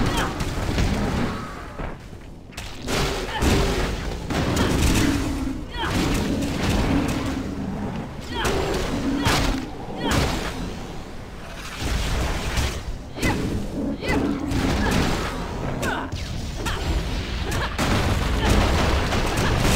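Weapons strike monsters with heavy thuds.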